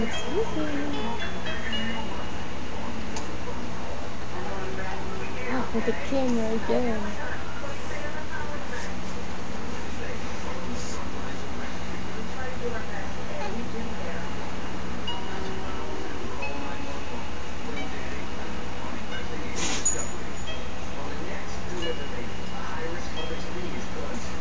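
A baby coos and babbles softly close by.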